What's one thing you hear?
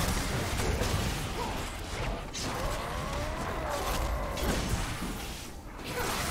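Game spell effects crackle and boom in a fight.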